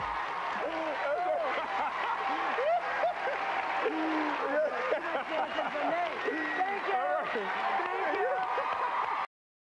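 A studio audience cheers and screams loudly in a large hall.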